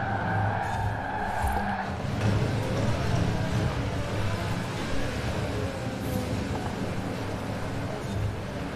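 A sports car engine roars loudly, revving up and down.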